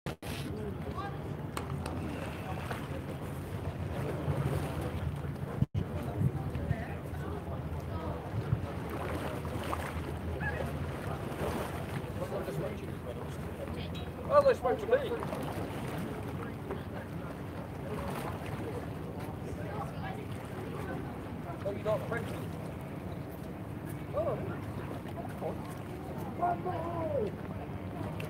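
Small waves lap against a harbour wall.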